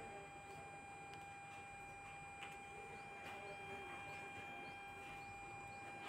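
Bangles clink softly as a hand turns a stack of them.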